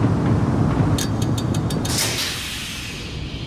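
Electricity crackles and buzzes sharply.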